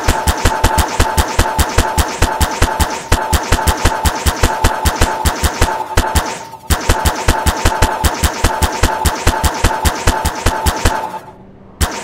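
A game tool fires rapidly with quick repeated clicks.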